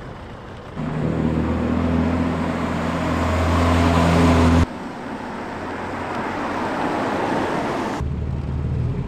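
A car engine hums and grows louder as a car approaches.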